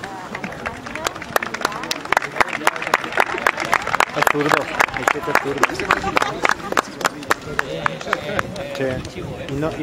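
A small crowd of spectators claps and cheers.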